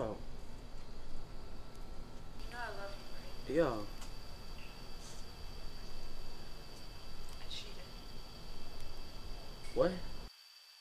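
A young man speaks quietly into a phone.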